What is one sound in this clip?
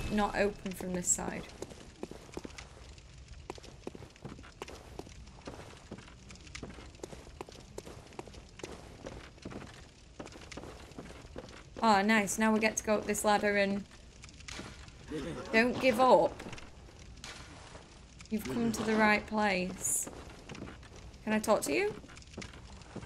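A young woman speaks close to a microphone, with animation.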